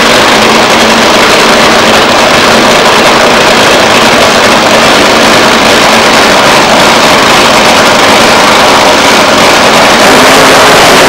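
A nitro-fuelled dragster engine idles with a harsh, crackling roar.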